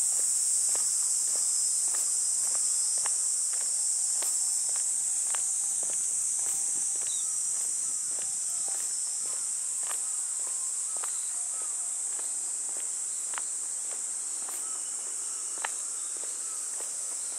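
Footsteps tap steadily on a paved path outdoors.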